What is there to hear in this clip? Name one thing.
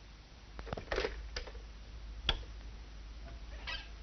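A telephone handset clatters as a man picks it up.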